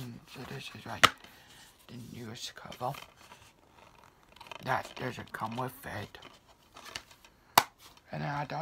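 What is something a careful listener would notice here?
A plastic disc case clicks open and shut.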